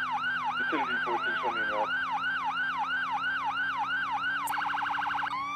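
A police siren wails up and down in quick cycles.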